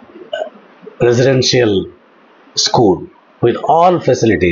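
An elderly man speaks calmly and clearly into a close microphone.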